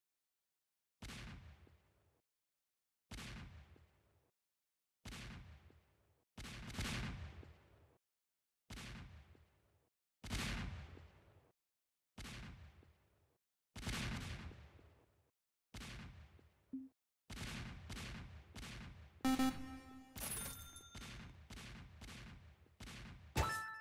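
Game towers fire loud booming shots again and again.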